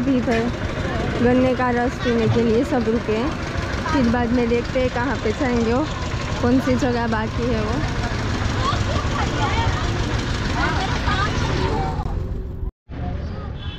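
Women talk outdoors nearby.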